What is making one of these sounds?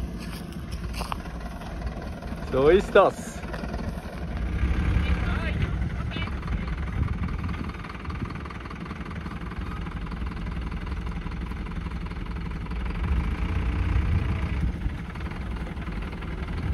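A truck's diesel engine rumbles steadily as the truck creeps forward over rough ground.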